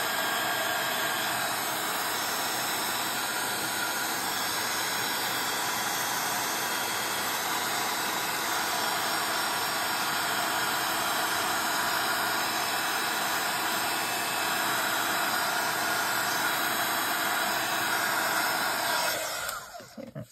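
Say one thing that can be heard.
A heat gun blows with a loud, steady whoosh, then switches off.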